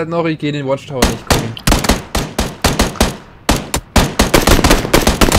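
Rapid gunfire cracks out close by.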